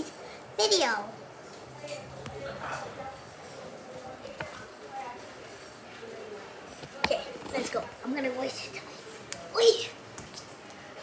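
A young girl speaks and squeals close by.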